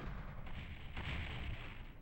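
A gun fires in a video game.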